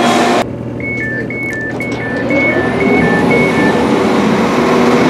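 A train door button beeps rapidly.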